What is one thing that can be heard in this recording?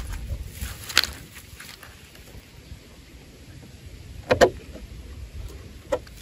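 A plastic bottle crinkles and knocks as it is handled.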